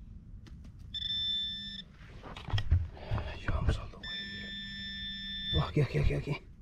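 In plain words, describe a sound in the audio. A metal detector probe beeps with a steady electronic tone.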